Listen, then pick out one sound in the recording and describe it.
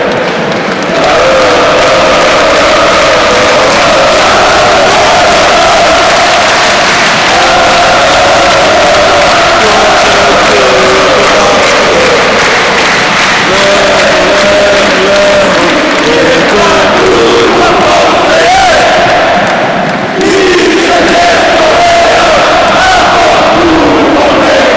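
A large crowd of men chants and sings loudly in a big echoing stadium.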